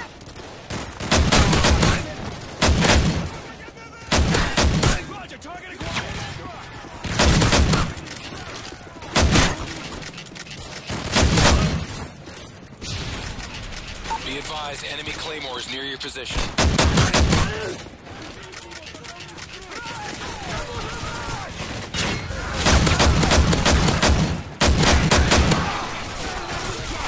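Rifle fire rattles in short, rapid bursts.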